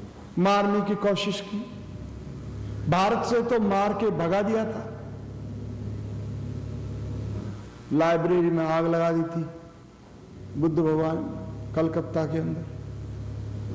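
An elderly man chants slowly in a drawn-out, singing voice close by.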